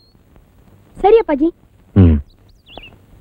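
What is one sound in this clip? A young boy speaks cheerfully and close by.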